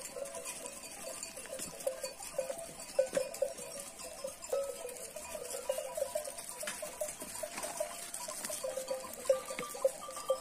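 Many sheep hooves patter and crunch on gravel nearby.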